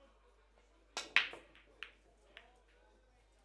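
A cue ball smashes into a rack of pool balls, which clack sharply and scatter.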